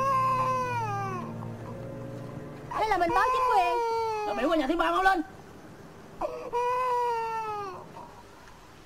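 A small child cries and wails loudly close by.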